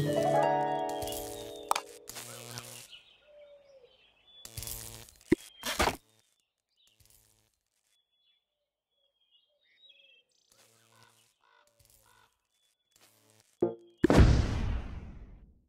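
Cheerful game sound effects chime as menus open and close.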